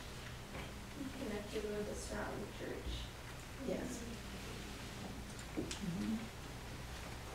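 An elderly woman speaks briefly and calmly nearby.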